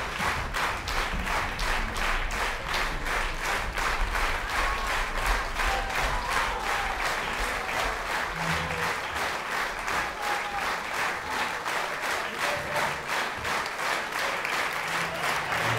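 A large crowd applauds steadily with rhythmic clapping in a big hall.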